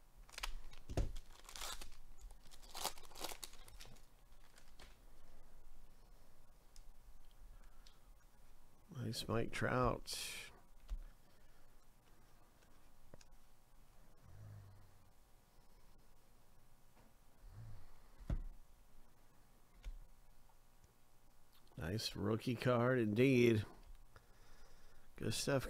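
Trading cards rustle and slide against each other in hands.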